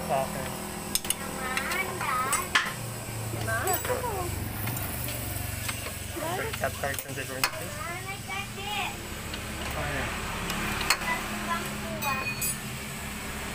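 Metal tools clink and tap against an engine.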